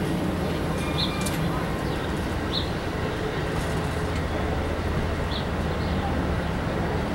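Train wheels squeal and clatter on the rails.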